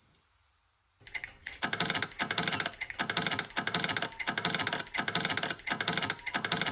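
A lockpick scrapes and clicks inside a metal lock.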